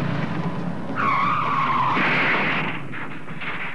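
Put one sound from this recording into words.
Tyres screech on a road.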